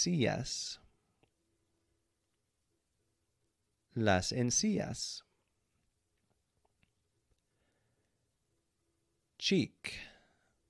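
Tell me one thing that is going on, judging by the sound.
A man speaks clearly and slowly into a close microphone, pausing between words.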